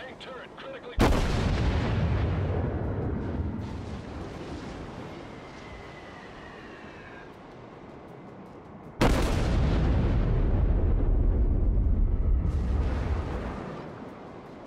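Heavy naval guns fire with deep booming blasts that rumble away slowly.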